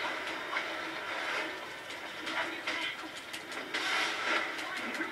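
Video game sounds play from a television's speakers.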